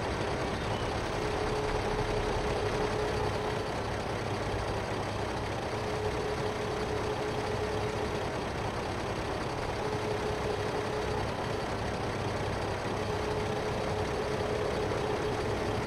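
A tractor engine idles steadily.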